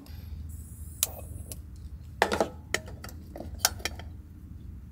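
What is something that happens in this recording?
A metal spoon clinks against a small pot.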